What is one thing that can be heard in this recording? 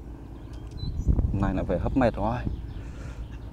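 A man speaks briefly and casually, close by.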